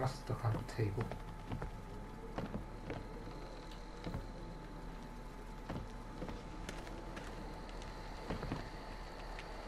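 Footsteps creak on wooden floorboards.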